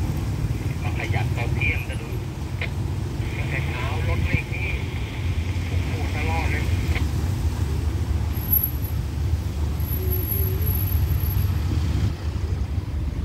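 Car tyres thump over a rail crossing.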